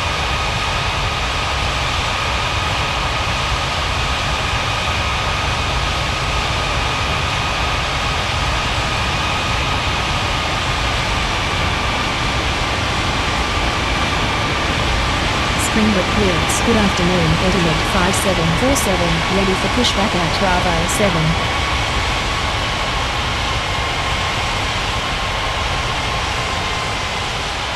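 Jet engines roar steadily with a high whine.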